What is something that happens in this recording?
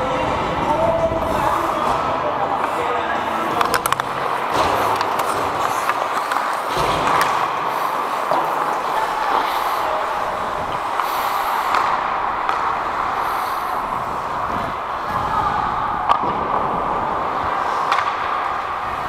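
Hockey sticks clack and tap on the ice.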